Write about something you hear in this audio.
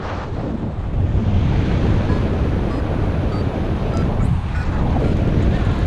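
Strong wind rushes and buffets steadily outdoors.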